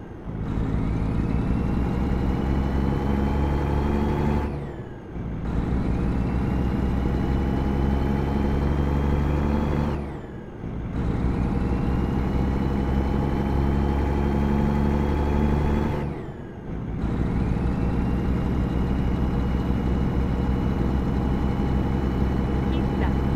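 A truck engine roars and rises in pitch as it speeds up, dropping briefly with each gear change.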